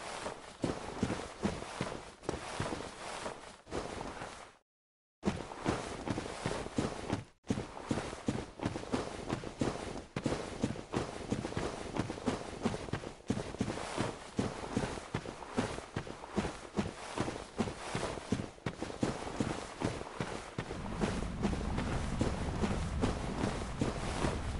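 Heavy armored footsteps thud and clank at a steady pace.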